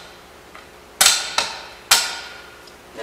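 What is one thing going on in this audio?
Metal poles clank together as they are assembled.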